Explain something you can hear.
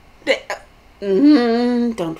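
A young woman sings a drawn-out note.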